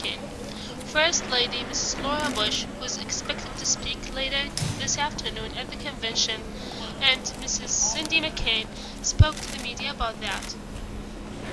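A woman talks with animation nearby, her voice echoing in a large hall.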